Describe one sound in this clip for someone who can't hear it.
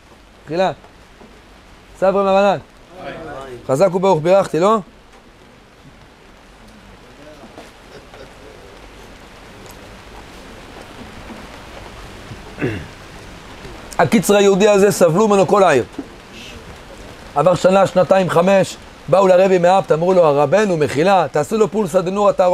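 A middle-aged man speaks with animation into a close microphone, pausing now and then.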